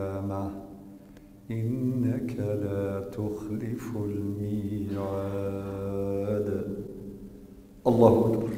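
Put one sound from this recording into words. A man chants a prayer aloud through a loudspeaker in a large echoing hall.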